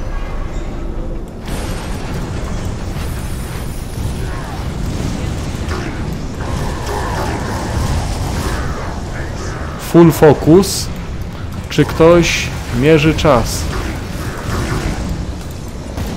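Fiery explosions and magic blasts roar steadily from a game.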